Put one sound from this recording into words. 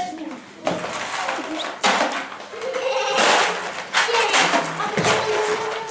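Cardboard blocks knock and thud as children stack them.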